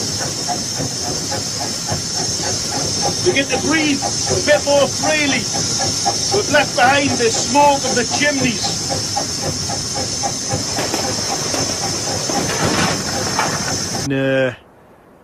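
A steam locomotive chugs and rumbles steadily.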